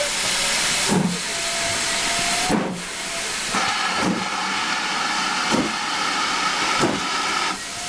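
Railway carriage wheels clank over the rail joints.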